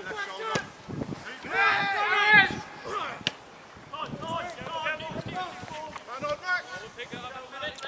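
Men shout to each other across an open outdoor field.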